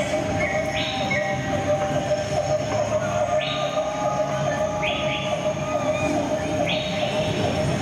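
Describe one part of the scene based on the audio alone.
Riders on a spinning fairground ride scream in short bursts.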